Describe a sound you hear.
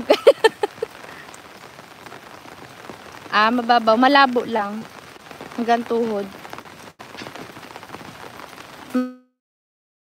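Water splashes in a shallow stream.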